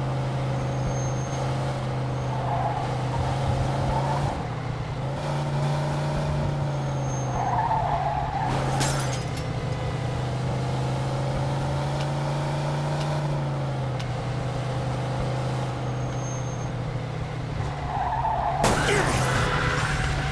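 A car engine hums steadily, rising and falling in pitch as the car speeds up and slows down.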